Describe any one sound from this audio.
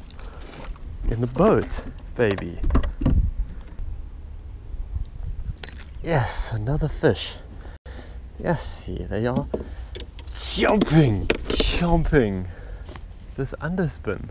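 A man talks excitedly close by.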